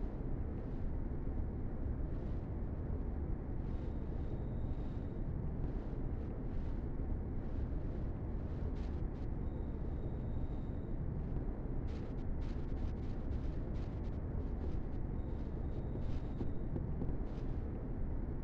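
Footsteps crunch on gravel at a steady walking pace.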